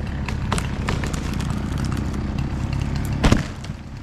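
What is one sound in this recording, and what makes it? A tree cracks and crashes heavily to the ground.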